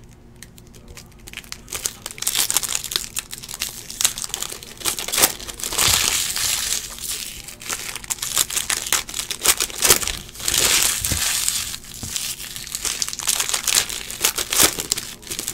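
Foil card wrappers crinkle and rustle as they are torn open.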